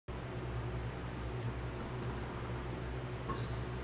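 A man sips a drink from a mug.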